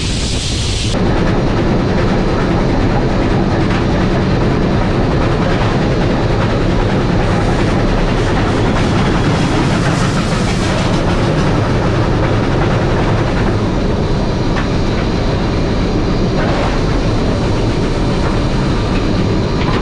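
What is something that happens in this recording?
A steam locomotive's firebox roars steadily inside a noisy cab.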